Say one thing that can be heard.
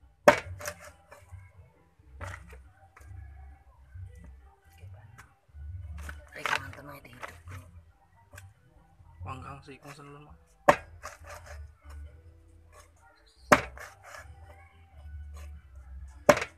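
A knife chops down hard on a wooden board.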